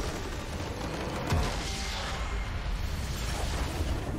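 A large explosion booms as a game structure is destroyed.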